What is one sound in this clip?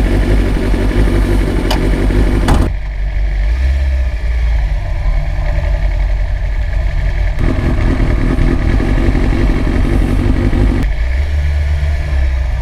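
A motorcycle engine roars and revs up close.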